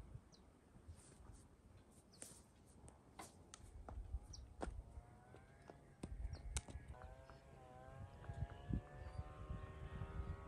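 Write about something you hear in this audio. A horse's hooves clop slowly on a paved road.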